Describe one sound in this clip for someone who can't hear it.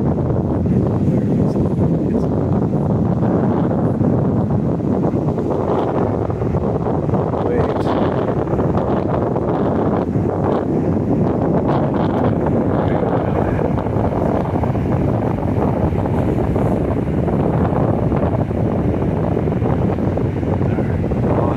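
Waves break and wash up on a beach nearby.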